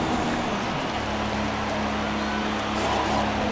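A racing car engine idles with a low rumble.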